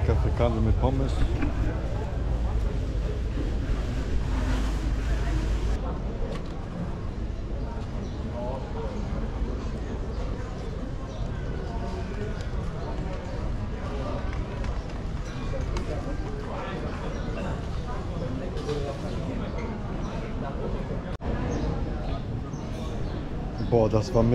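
A young man talks close to the microphone.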